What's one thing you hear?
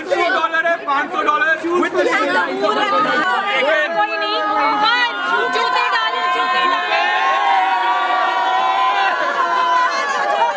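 Young women laugh cheerfully.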